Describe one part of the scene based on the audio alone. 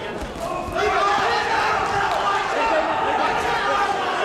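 Boxing gloves thud on a fighter's body.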